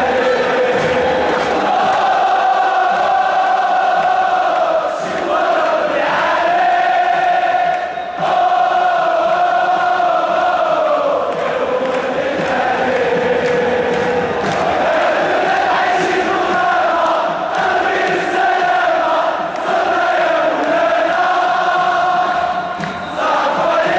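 A huge stadium crowd chants a song in unison, echoing in the open air.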